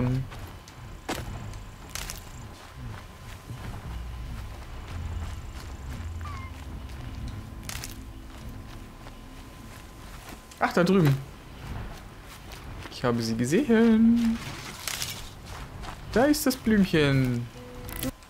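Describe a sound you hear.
Footsteps rustle through grass as a person runs.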